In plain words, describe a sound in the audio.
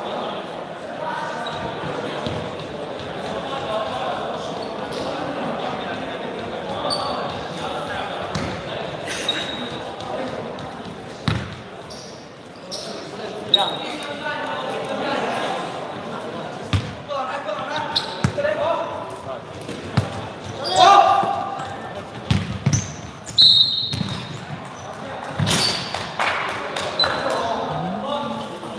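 A crowd of young people chatters and calls out in a large echoing hall.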